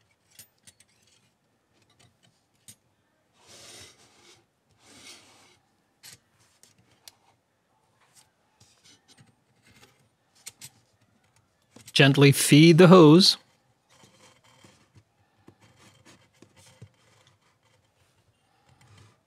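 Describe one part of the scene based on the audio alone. Metal parts clink and scrape together as a small stove is handled.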